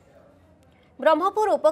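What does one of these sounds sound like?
A young woman speaks calmly and clearly, like a news presenter, close to a microphone.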